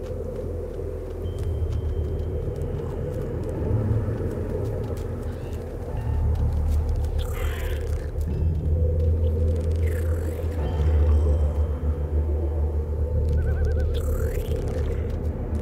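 Footsteps patter on grass as a character runs.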